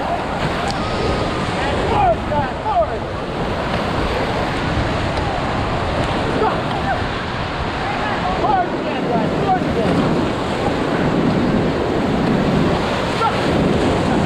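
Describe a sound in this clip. Whitewater rushes and roars loudly all around.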